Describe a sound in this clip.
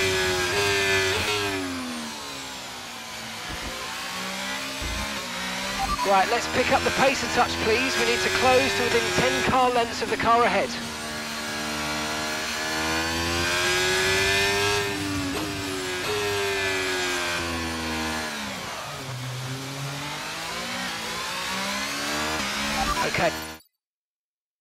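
A racing car engine whines, rising and falling in pitch as it shifts gears.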